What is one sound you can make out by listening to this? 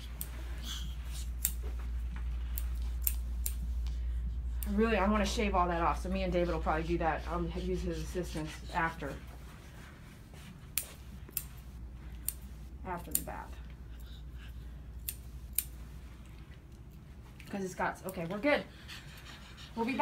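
Scissors snip quickly through fur, close by.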